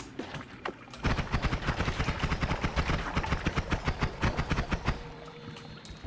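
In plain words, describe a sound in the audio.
Rapid game blasts crackle and thump in quick bursts.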